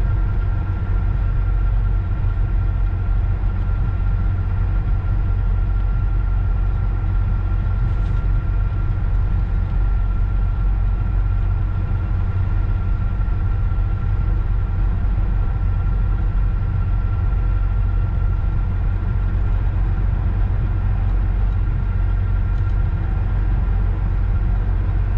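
A locomotive engine rumbles steadily as a train rolls along the track.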